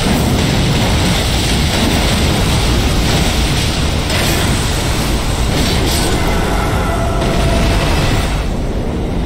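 Magic blasts roar and crackle in a fierce fight.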